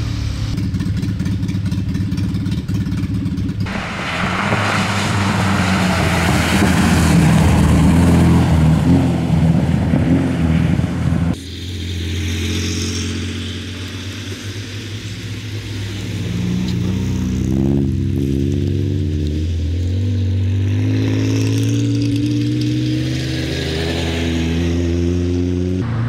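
Rally car engines roar and rev loudly as the cars pass close by.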